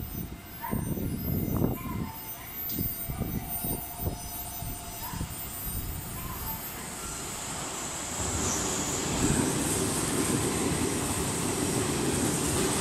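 A train rumbles closer and then roars past at speed.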